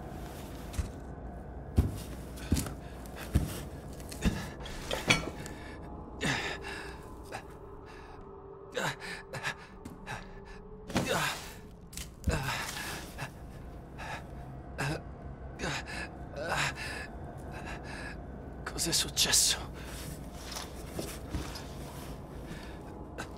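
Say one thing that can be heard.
Footsteps thud slowly on creaking wooden floorboards.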